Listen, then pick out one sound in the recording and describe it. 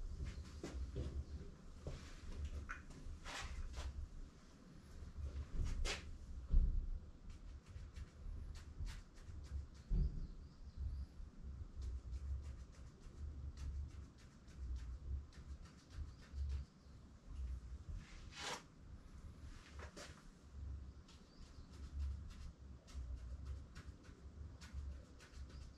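Soft knocks and thuds sound as objects are handled.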